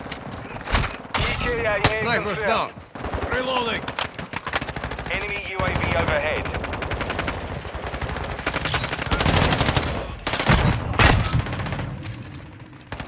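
Rapid gunfire bursts out in loud, sharp volleys.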